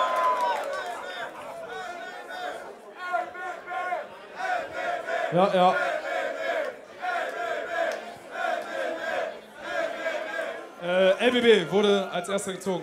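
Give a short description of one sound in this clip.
A man talks calmly through a microphone over loudspeakers.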